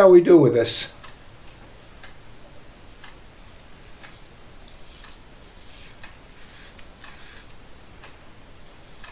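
A razor scrapes softly across stubble in short strokes.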